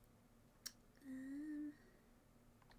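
A young woman murmurs briefly close to a microphone.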